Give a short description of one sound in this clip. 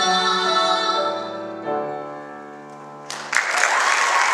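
A piano plays in a large hall.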